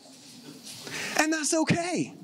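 A man laughs into a microphone.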